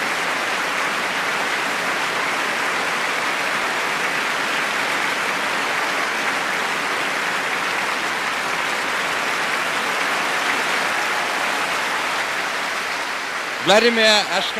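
A large audience applauds steadily in an echoing concert hall.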